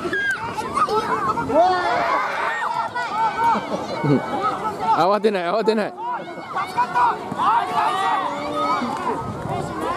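Young children shout and cheer excitedly across an open field.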